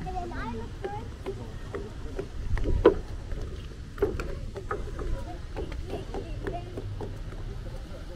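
Small feet tap on wooden boards.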